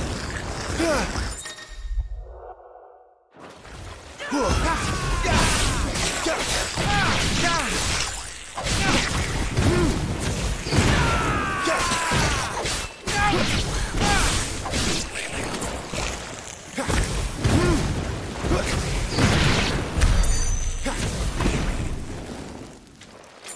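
Swords clash and slash in a fierce fight.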